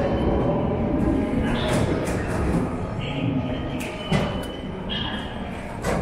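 Metal ticket gates clunk and swing.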